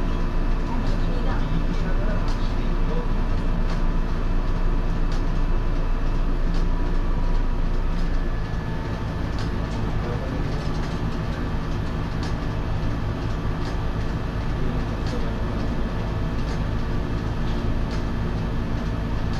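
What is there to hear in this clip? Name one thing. A train's motor hums steadily with a low drone.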